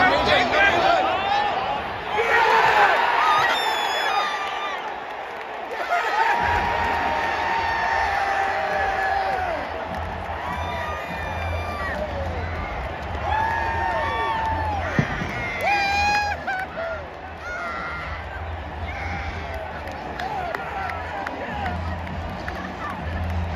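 A huge stadium crowd roars and cheers outdoors.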